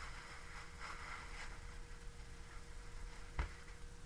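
A tissue wipes across a whiteboard.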